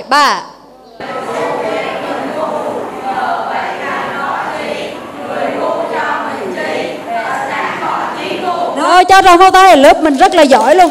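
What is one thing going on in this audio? A group of young people sing together.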